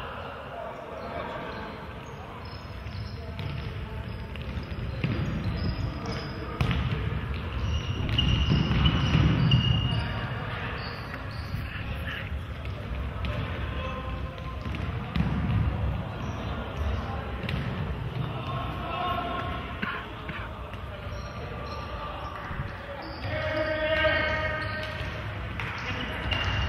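A ball thumps off feet and the floor.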